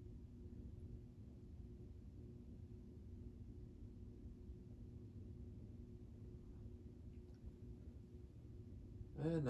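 Electric fans hum and whir steadily with a low drone.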